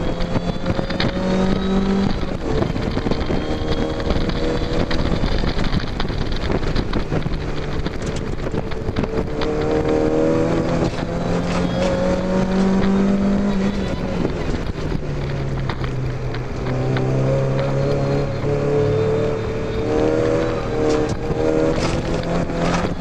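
Wind buffets loudly around an open-top car.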